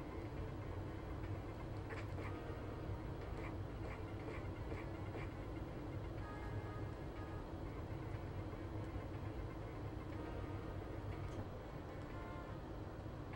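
Fast electronic video game music plays steadily.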